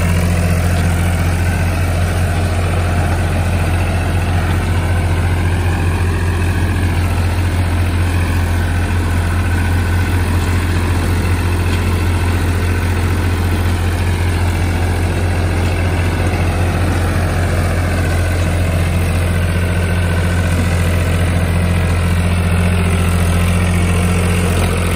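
A diesel tractor engine runs under load.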